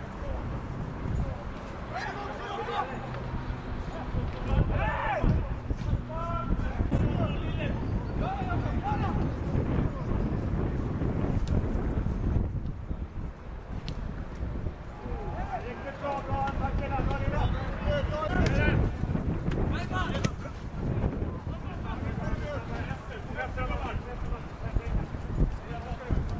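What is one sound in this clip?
Young men shout to each other across an outdoor football pitch.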